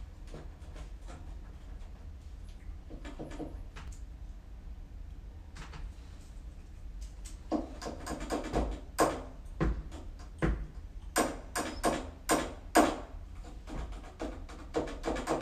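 Plastic keyboard keys tap and clack under quick fingers.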